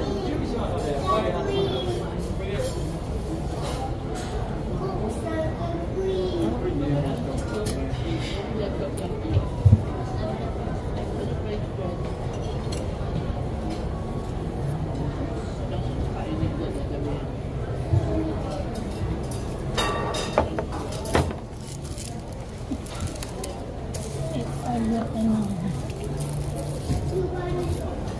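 Voices murmur in the background.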